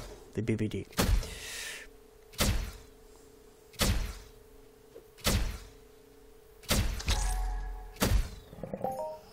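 An energy weapon fires sharp shots at a steady pace.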